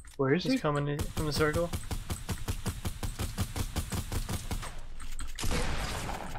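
An assault rifle fires in a rapid burst.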